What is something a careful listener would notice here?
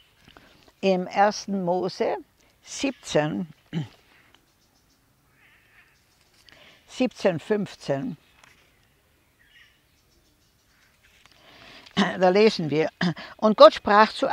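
An elderly woman speaks calmly and close by, in short phrases with pauses.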